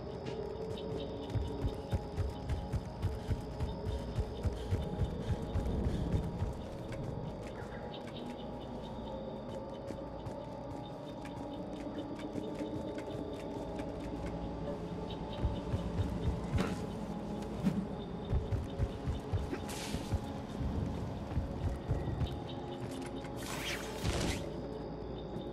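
Heavy boots thud quickly on hard ground.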